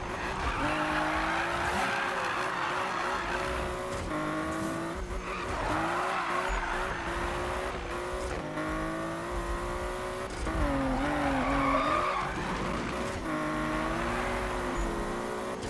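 Tyres screech as a car drifts through bends.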